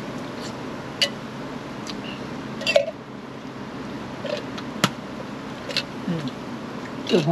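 A metal can clinks and taps in a man's hands.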